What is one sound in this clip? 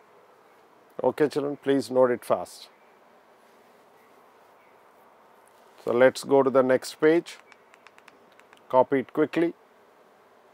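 A man speaks calmly and clearly into a microphone, in short bursts.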